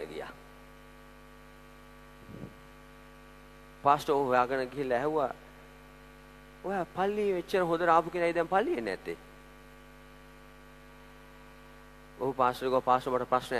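A man preaches with animation through a microphone and loudspeakers in a large echoing hall.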